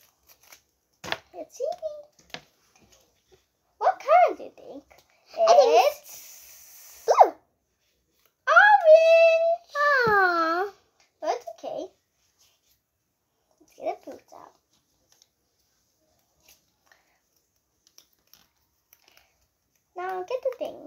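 Young girls talk and sing playfully close by, in short bursts with pauses.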